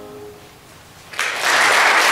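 A piano's last chord rings and fades.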